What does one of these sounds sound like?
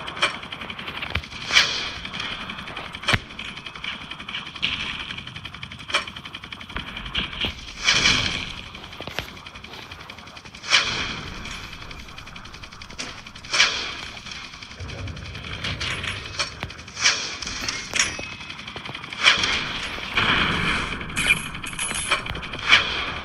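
Gunfire bursts out in short, sharp volleys.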